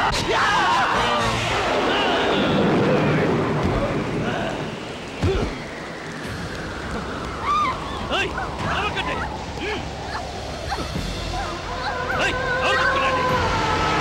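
Young women cry out in fear.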